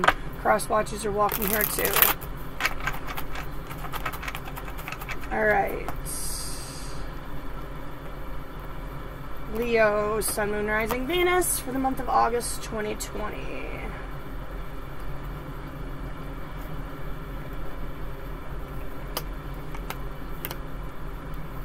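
Playing cards shuffle and slap together.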